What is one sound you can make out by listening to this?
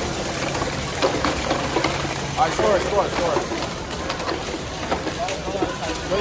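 Plastic balls knock and clatter against robots.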